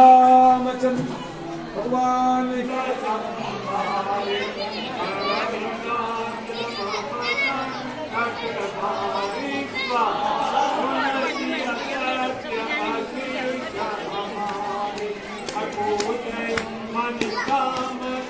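A group of men chant together.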